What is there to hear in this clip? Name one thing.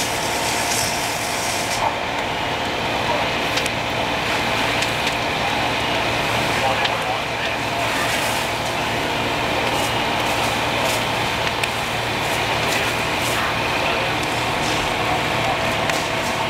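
A fire crackles and pops.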